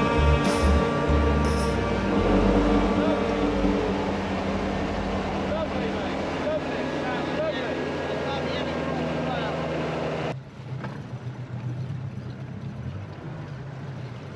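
An outboard motor hums steadily, then drops to a low idle.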